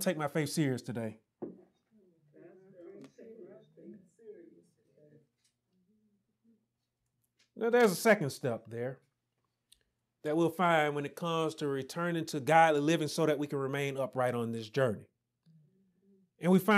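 A man speaks calmly and clearly into a microphone, pausing between phrases.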